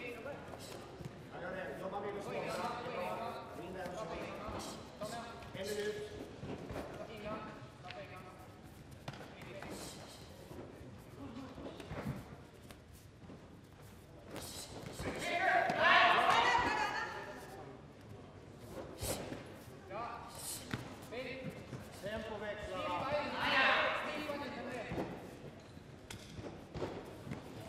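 Punches and kicks thud against padded jackets.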